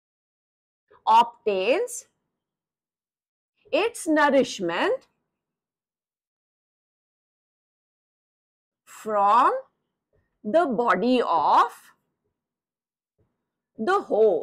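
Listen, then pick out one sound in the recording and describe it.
A woman speaks calmly in short phrases.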